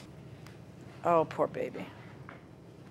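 A middle-aged woman speaks briefly in a firm tone.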